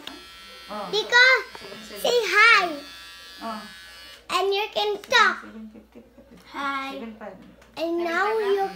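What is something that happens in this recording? Children shout and laugh.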